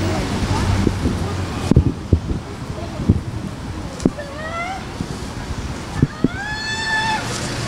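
Women talk nearby outdoors.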